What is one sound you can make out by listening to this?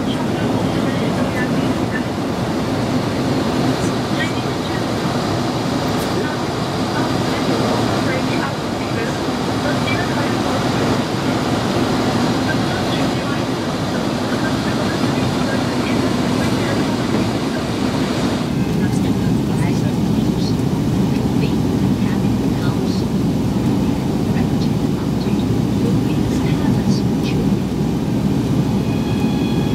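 A jet engine roars steadily inside an aircraft cabin.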